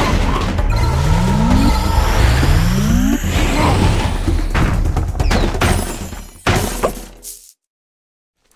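Magic zaps and whooshing blasts ring out during a fight.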